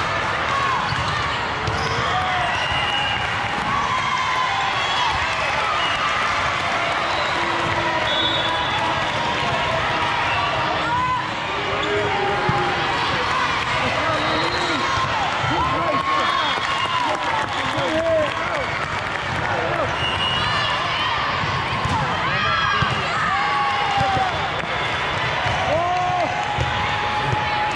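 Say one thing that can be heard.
Sneakers squeak sharply on a court in a large echoing hall.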